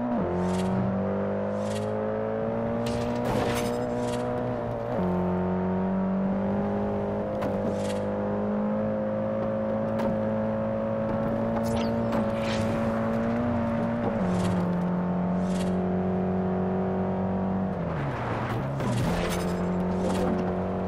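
A car engine drones steadily at speed, dropping in pitch as the gears shift.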